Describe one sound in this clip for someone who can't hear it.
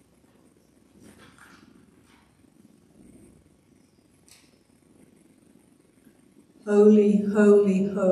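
An elderly woman speaks calmly into a microphone, heard through loudspeakers in a large room.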